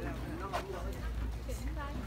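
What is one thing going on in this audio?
A woman talks nearby with animation.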